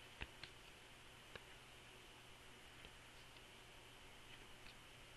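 Trading cards flick and slide against each other as they are shuffled by hand.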